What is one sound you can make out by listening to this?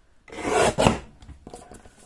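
A paper trimmer blade slides through paper.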